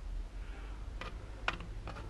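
A plastic cap clicks onto a jug.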